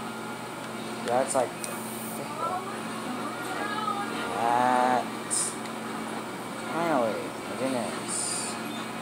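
Video game sound effects chirp and warble from a television speaker.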